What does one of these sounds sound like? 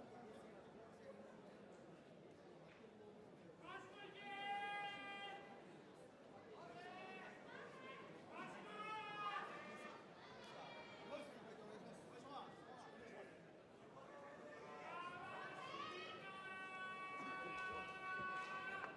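A crowd murmurs throughout a large echoing arena.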